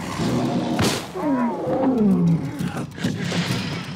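A big cat snarls and growls.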